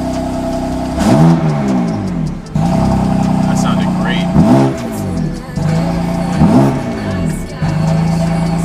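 A car engine revs sharply several times, rising to a roar and dropping back.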